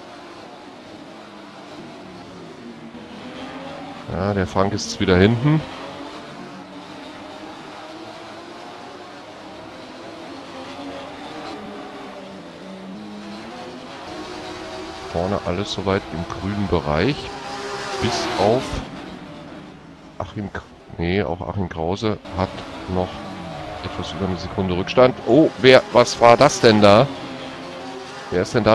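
Race car engines roar, rising and falling in pitch as the cars change gear.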